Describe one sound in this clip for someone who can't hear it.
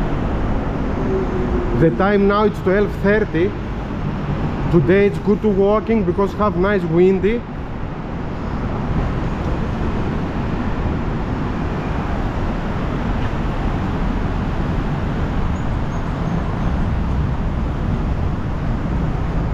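Traffic hums steadily from the street below, outdoors.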